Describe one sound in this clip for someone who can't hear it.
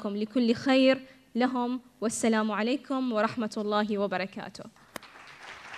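A young woman chants in a melodic voice through a microphone in a large hall.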